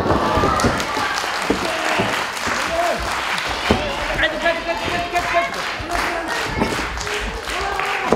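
A crowd shouts and cheers in a large echoing hall.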